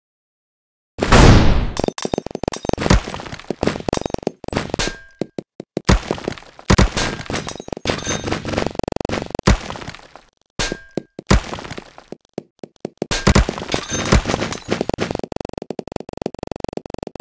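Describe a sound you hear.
Blocks and crates crash and shatter in a busy clatter of breaking game sounds.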